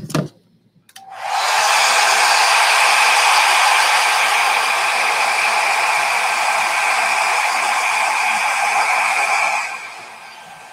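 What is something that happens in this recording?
A hair dryer blows loudly and steadily, then cuts out.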